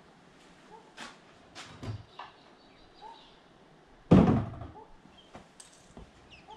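A wooden board knocks and thumps against a bench.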